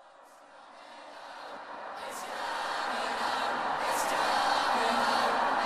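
A young woman sings close to a microphone, her voice swelling louder.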